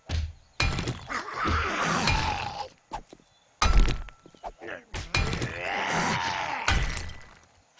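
A pickaxe strikes stone with sharp, heavy thuds.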